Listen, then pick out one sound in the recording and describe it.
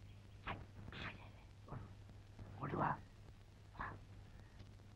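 A man speaks quietly at a distance.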